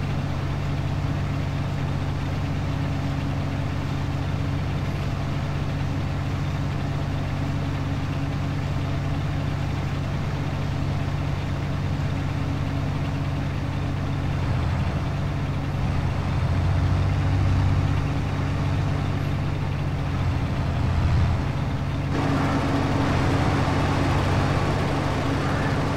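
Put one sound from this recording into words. Crop stalks rustle and crunch as a harvester cuts through them.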